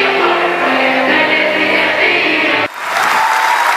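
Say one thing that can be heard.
A choir sings.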